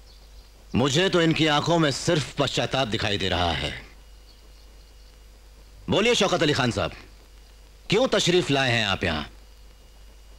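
A man speaks forcefully and tensely, close by.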